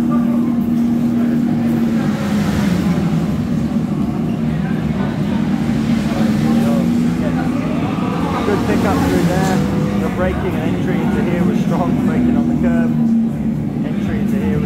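A racing motorcycle engine roars and changes pitch through a loudspeaker.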